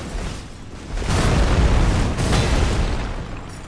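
A loud icy blast bursts with a rushing roar.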